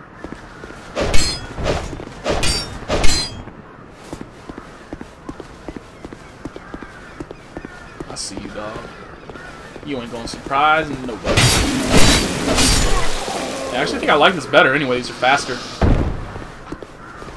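Swords swing and clang in sharp metallic strikes.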